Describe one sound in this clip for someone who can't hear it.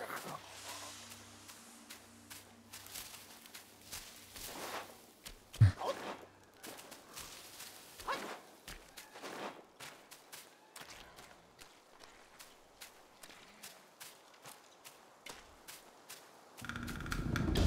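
Footsteps patter quickly on earth and gravel.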